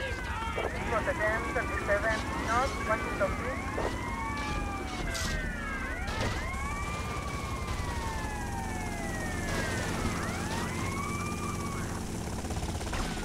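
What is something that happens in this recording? A police siren wails up and down.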